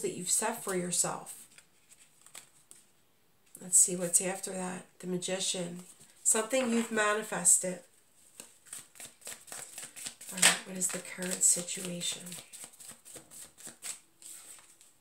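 Playing cards riffle and slap together in hands.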